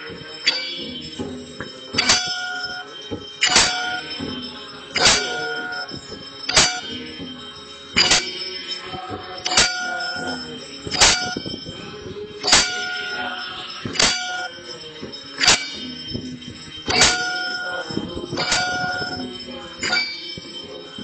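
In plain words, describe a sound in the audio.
A metal bell is struck in slow, even strokes, each one ringing on briefly.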